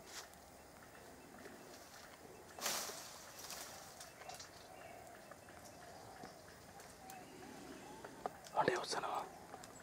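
Leafy branches rustle and snap close by.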